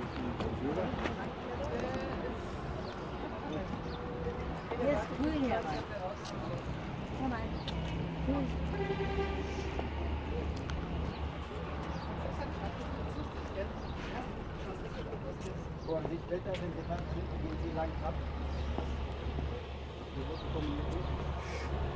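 A group of men and women chatter at a distance outdoors.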